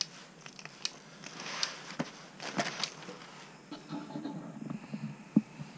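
Plastic clicks and taps softly.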